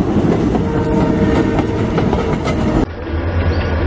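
A diesel locomotive rumbles loudly close by.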